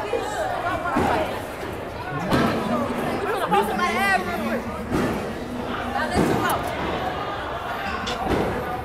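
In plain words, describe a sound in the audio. Young women talk and laugh excitedly close by.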